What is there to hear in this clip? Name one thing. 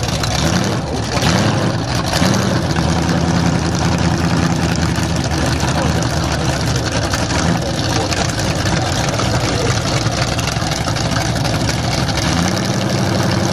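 A loud race car engine idles and revs roughly close by.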